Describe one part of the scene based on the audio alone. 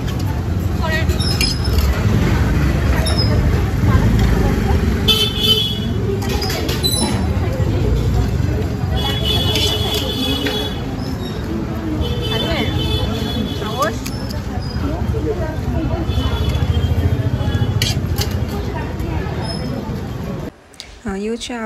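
Young women chat nearby.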